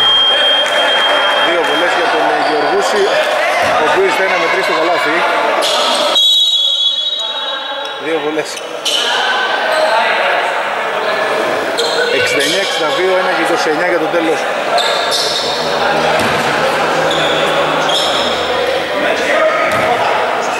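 Men call out and talk to each other in a large echoing hall.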